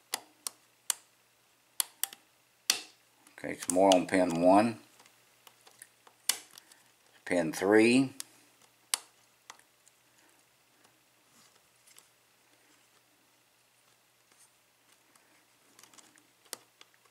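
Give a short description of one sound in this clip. Metal picks tick and click inside a euro cylinder lock.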